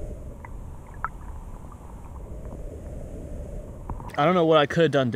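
Water flows past with a low, muffled rush, as heard underwater.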